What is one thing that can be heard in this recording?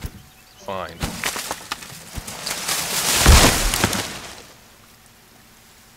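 A tree creaks and crashes to the ground.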